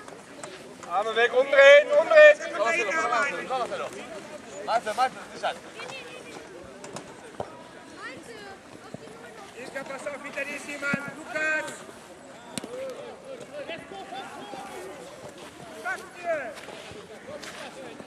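Children shout to each other outdoors during a football game.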